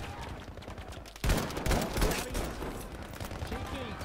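A rifle fires a sharp, loud shot.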